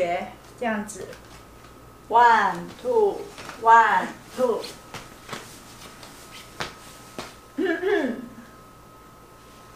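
A young girl speaks brightly.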